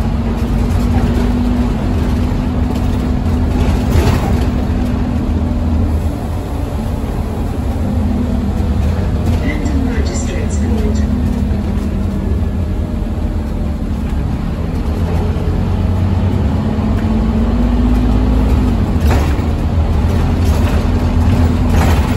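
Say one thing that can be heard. Tyres hiss on a wet road beneath a moving bus.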